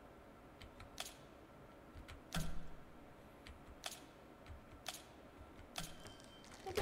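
Sharp clicks sound one at a time as puzzle pieces snap into place.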